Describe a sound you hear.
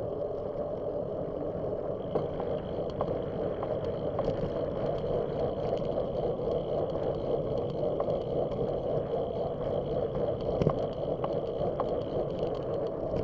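Wind rushes steadily past the microphone.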